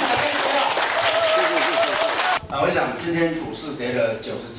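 A man speaks into a microphone to an audience.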